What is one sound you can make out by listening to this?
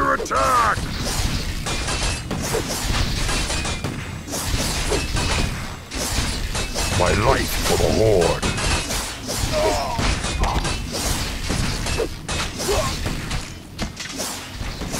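Weapons clash and thud in a busy fight.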